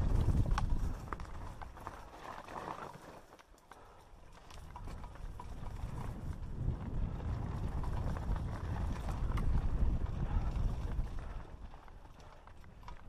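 Mountain bike tyres crunch and rumble over a rocky dirt trail.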